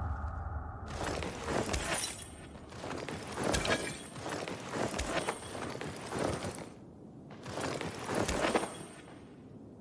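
Hands rummage through a bag and pick up items with short clicks.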